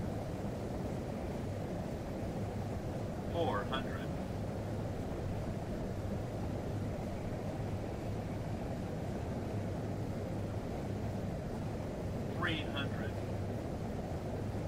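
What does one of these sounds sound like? The engines of a jet airliner drone steadily, heard from inside the cabin in flight.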